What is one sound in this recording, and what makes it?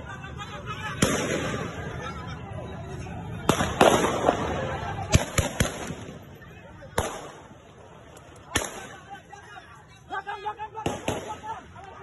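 Warning gunshots crack sharply outdoors.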